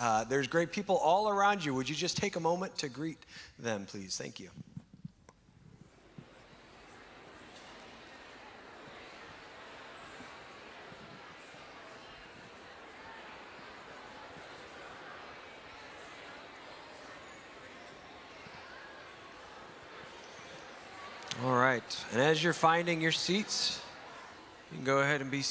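A man speaks into a microphone, heard over loudspeakers in a large echoing hall.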